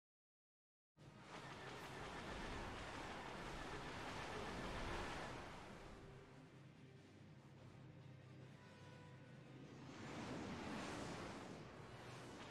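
A deep rumbling of spaceships roars past.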